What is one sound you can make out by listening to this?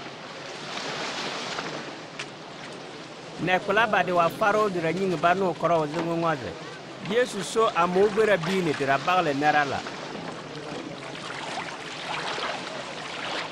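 Small waves splash on a stony shore.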